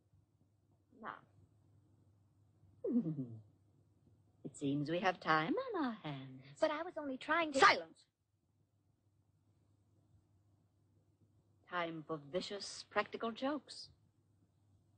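An older woman speaks in a cold, haughty voice.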